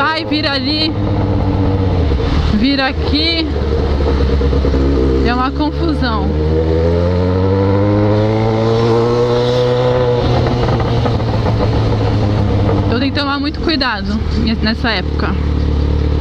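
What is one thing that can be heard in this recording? A motorcycle engine rumbles steadily and revs up as it speeds along.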